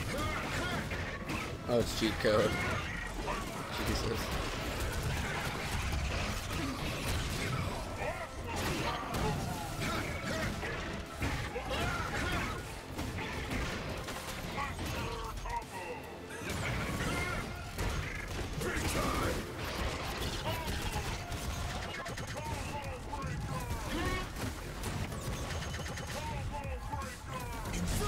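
Punches and kicks land with sharp smacking hits in a fast fight.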